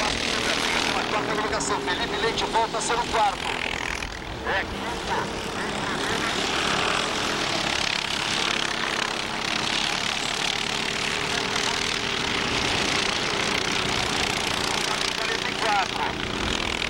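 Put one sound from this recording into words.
Kart engines rev up and down as the karts pass by.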